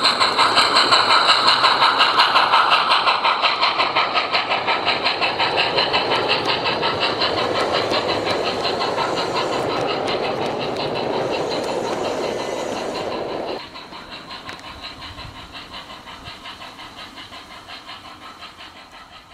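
A model train rattles along close by, its wheels clicking in a fast, steady rhythm over the rail joints.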